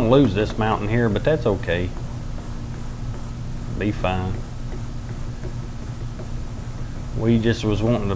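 A paintbrush strokes softly across a canvas.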